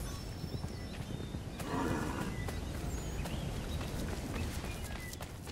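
Footsteps crunch over grass and rocky ground.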